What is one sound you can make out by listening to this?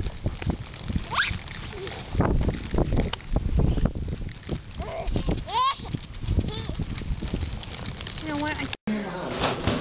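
Stroller wheels rattle and roll over pavement outdoors.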